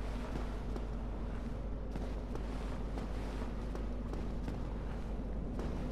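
Footsteps tread steadily on stone.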